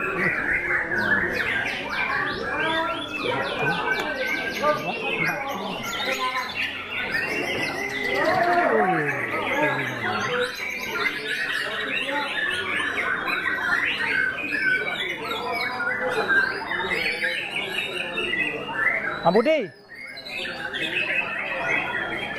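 Many other caged birds chirp and sing all around.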